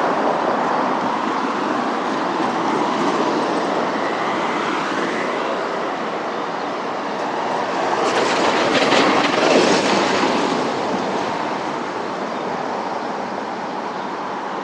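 Traffic hums steadily along a nearby street.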